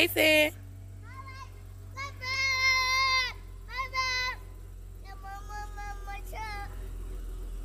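A small child calls out in a high voice.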